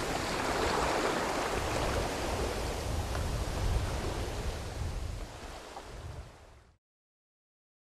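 Waves crash and churn against rocks, fading away.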